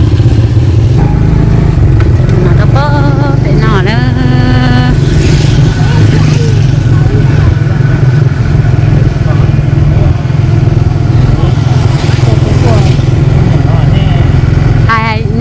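A motorbike engine hums steadily as it rides along.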